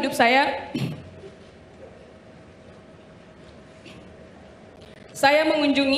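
A young woman speaks emotionally into a microphone, pausing at length.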